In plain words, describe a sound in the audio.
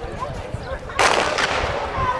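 A starting pistol fires once with a sharp crack.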